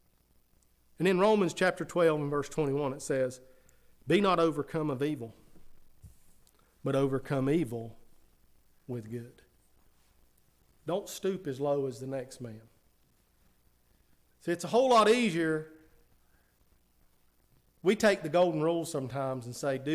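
A middle-aged man speaks with feeling into a microphone, in short bursts with long pauses.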